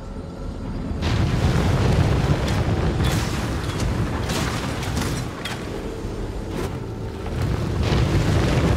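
Magic fire blasts burst and roar in quick bursts.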